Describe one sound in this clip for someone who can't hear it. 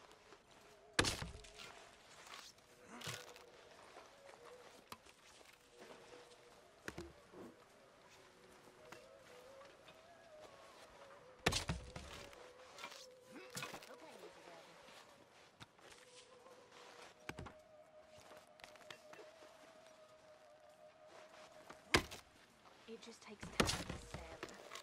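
An axe splits wood with sharp, heavy cracks.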